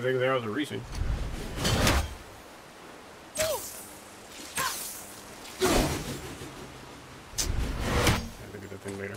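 Heavy blows land with deep booming thuds.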